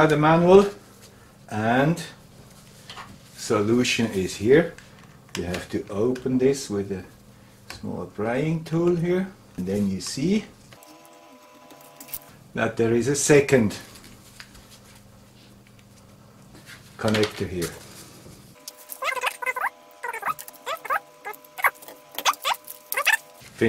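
Small plastic parts click and rustle as gloved hands handle them.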